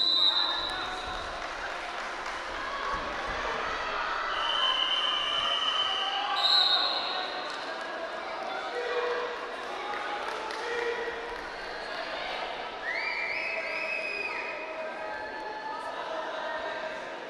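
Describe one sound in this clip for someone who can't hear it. A large crowd in an echoing arena cheers and shouts throughout.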